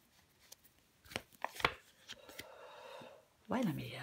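A playing card is laid down with a soft tap.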